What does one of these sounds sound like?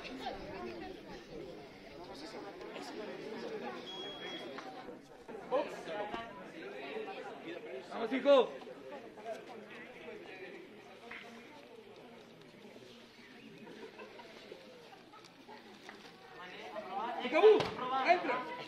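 A crowd of spectators chatters and calls out around the ring.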